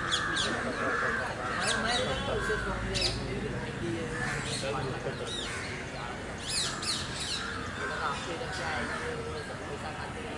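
A bird squawks and chirps close by.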